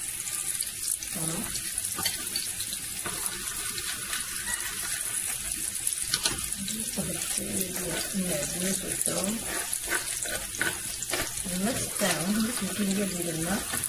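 A spoon stirs and clinks against a glass bowl.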